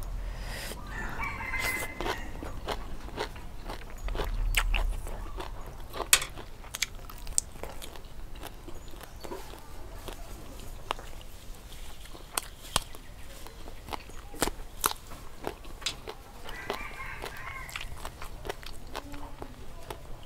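A young woman chews and smacks her lips loudly close by.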